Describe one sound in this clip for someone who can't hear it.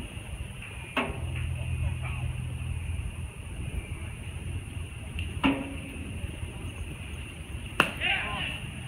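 A baseball smacks into a catcher's mitt in the distance.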